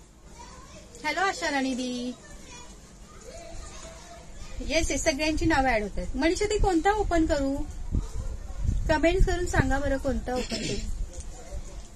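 A middle-aged woman speaks animatedly, close to the microphone.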